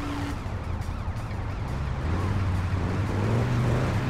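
A car engine idles and rumbles low.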